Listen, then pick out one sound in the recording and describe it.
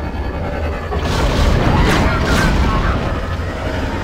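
A loud explosion bursts and rumbles.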